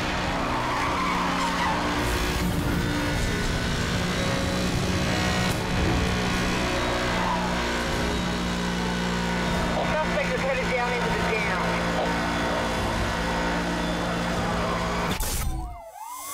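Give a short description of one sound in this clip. Tyres screech while drifting.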